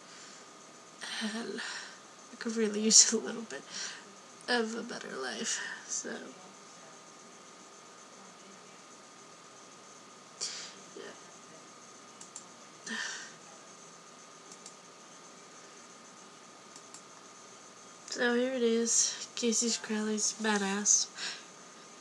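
A young woman speaks in short bursts, close to a microphone.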